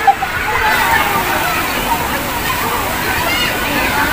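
Water splashes in a pool.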